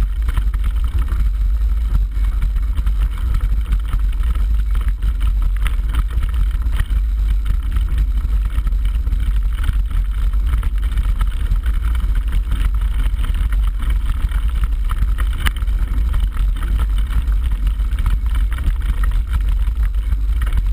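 Wind roars loudly against a microphone outdoors.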